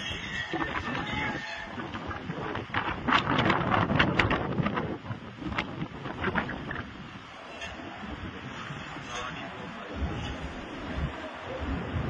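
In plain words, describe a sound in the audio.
Strong wind roars and gusts outdoors.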